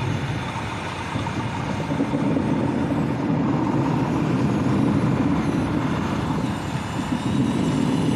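Dirt and stones scrape and crunch under a blade.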